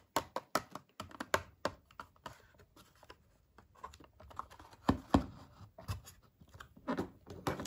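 Stiff plastic packaging crinkles and clicks in a person's hands.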